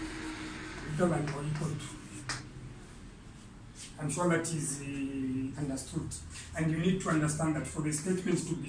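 A man speaks calmly and clearly, as if teaching.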